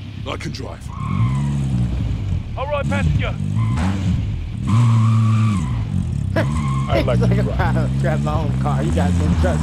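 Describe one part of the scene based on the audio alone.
A vehicle engine hums and revs as it drives.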